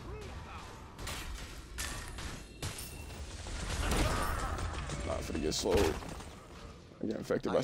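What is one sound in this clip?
Magic blasts and whooshes sound from a video game.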